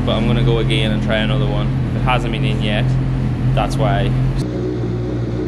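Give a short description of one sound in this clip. A motorcycle engine revs sharply in short bursts.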